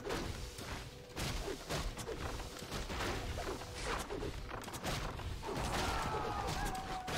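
Swords clash and spells burst in a game battle.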